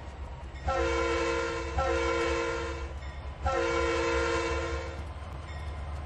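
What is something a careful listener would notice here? A diesel locomotive horn blows twice.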